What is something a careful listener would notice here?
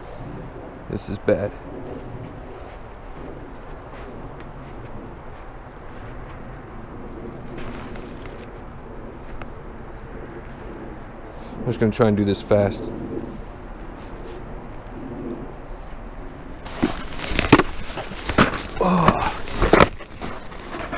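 Boots crunch through snow in short bursts of footsteps.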